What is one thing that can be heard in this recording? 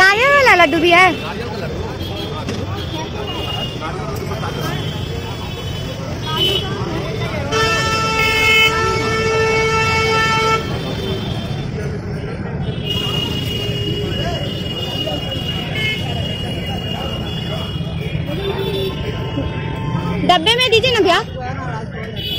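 A crowd murmurs nearby on a busy street.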